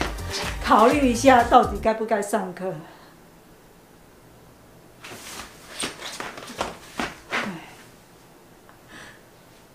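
A young girl laughs loudly and gleefully.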